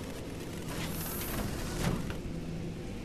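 A metal door slides open with a hiss.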